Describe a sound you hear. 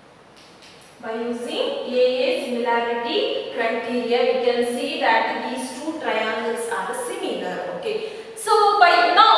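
A young woman speaks clearly and with animation, close by.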